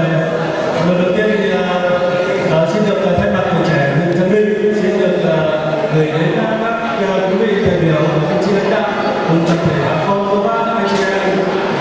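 A young man sings into a microphone over loudspeakers.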